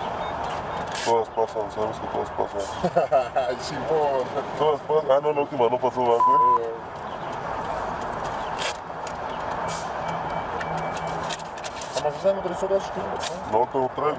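A man speaks casually at close range.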